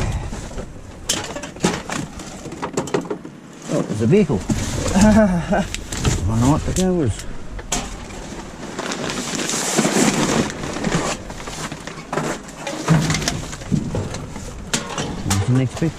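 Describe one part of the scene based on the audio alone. Aluminium cans clatter as they are tossed into a pile of cans.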